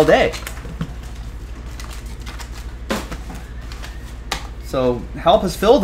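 Card packs rustle and tap as a hand handles them.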